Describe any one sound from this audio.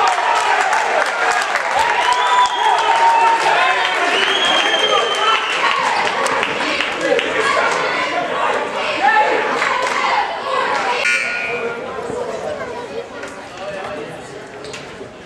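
Sneakers squeak on a hard court floor.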